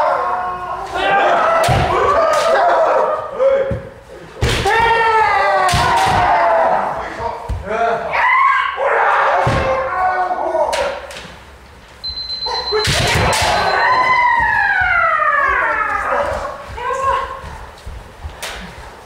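Kendo fencers shout drawn-out battle cries in a large echoing hall.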